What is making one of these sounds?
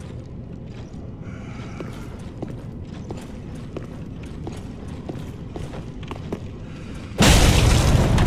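Armoured footsteps clank on stone floor.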